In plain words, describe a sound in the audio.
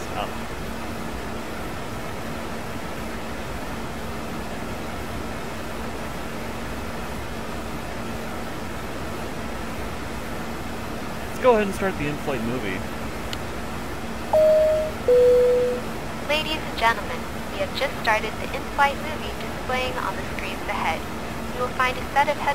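A jet engine hums steadily in the background.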